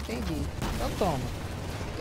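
Explosions boom during a firefight.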